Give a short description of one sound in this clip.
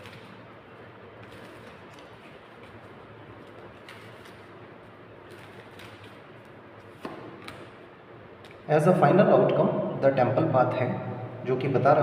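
Playing cards riffle and slap softly as they are shuffled.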